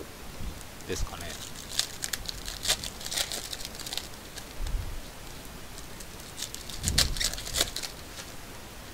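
Foil card packs rustle and crinkle as hands sort them.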